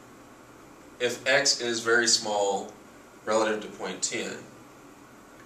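A man speaks calmly nearby, as if explaining.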